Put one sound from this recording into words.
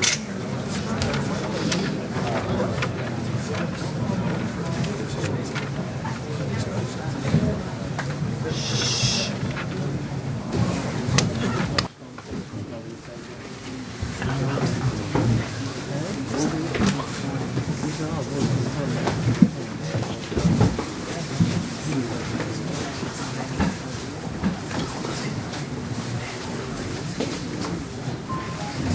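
A crowd of men murmur and chant together.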